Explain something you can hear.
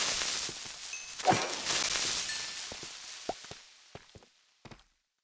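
An explosion bursts and rumbles away.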